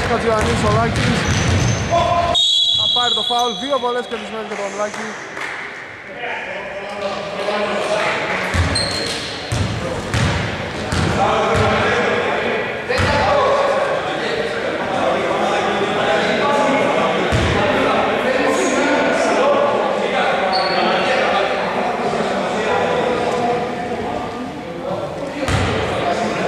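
Basketball players' sneakers squeak on a wooden court.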